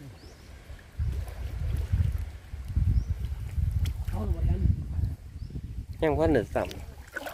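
Water sloshes as a person wades through it.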